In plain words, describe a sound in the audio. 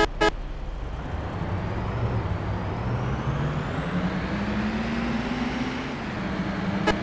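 A bus engine revs up, rising in pitch.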